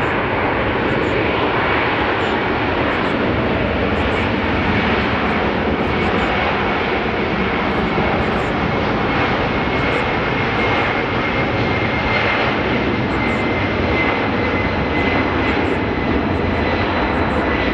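A jet engine whines with a high steady tone.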